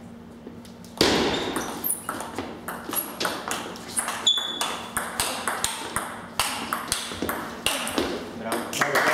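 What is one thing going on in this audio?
A table tennis ball clicks quickly back and forth off paddles and the table in an echoing hall.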